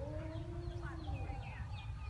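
A knife cuts through bamboo stems.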